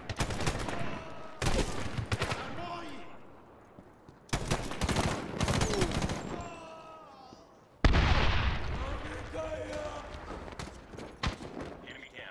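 Rapid gunfire rattles in loud bursts, echoing between walls.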